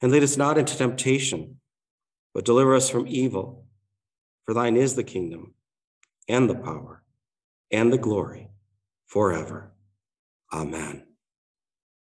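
A middle-aged man speaks calmly in short phrases into a microphone.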